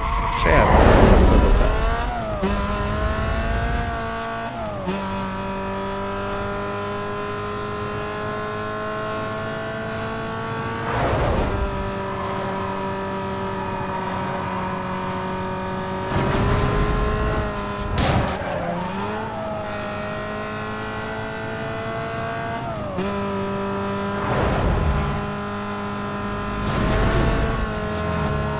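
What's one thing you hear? A racing car engine roars at high revs, its pitch climbing and dropping with each gear change.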